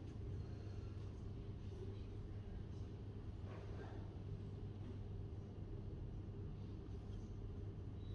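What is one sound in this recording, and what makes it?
Fingers tap softly on a laptop keyboard.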